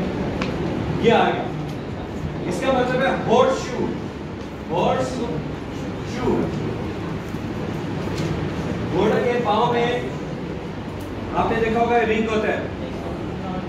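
A middle-aged man speaks calmly to a room.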